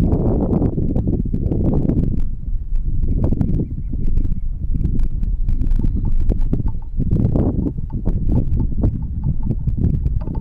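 Water laps softly against a small boat.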